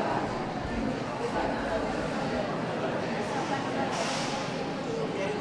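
A crowd of adults murmurs and chatters indoors.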